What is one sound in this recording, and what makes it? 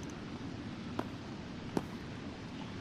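Heels click on a hard floor.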